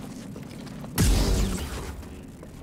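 A lightsaber ignites with a sudden loud buzz.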